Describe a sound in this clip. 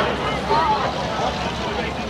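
A race car engine roars past.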